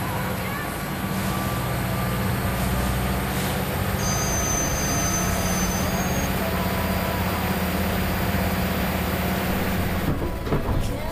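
A train engine rumbles steadily.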